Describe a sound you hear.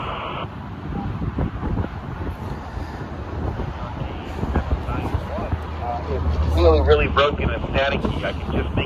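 Wind rumbles across a microphone outdoors.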